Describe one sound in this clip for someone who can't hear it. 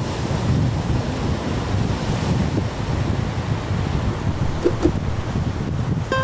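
Small waves wash up onto a sandy shore and fizz as they draw back.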